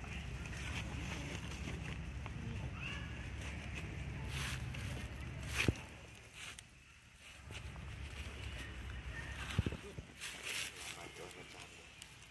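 A small monkey rustles and scrapes a stick through dry leaves.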